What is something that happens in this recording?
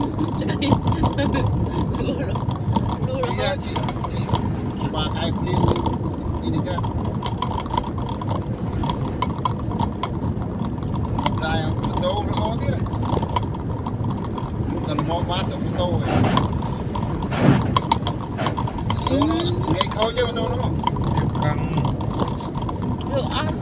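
Raindrops patter on a windshield.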